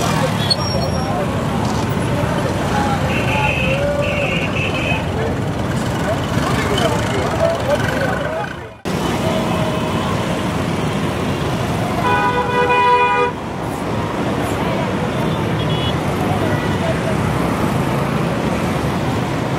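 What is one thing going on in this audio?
Motorbike engines rumble nearby.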